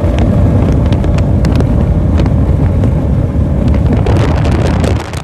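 A powerboat engine roars loudly as the boat speeds past.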